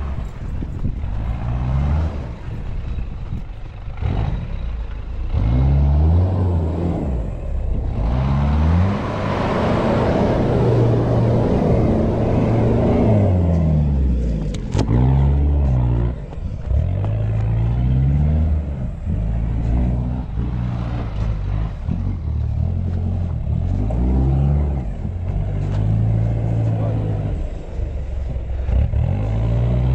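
An off-road vehicle engine revs hard, rising and falling in pitch.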